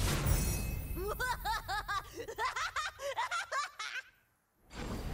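Bright chiming notes ring out in a quick, bouncing run.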